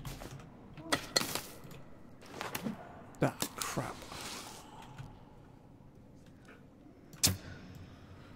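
An axe strikes with sharp thuds.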